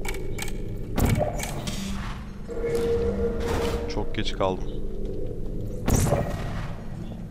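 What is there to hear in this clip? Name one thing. A sci-fi energy gun fires with sharp electronic zaps.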